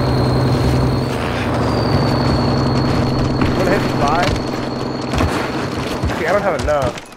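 A vehicle engine drones steadily, then cuts away.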